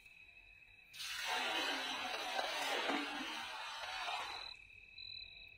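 A fishing net lands in water with a rushing splash.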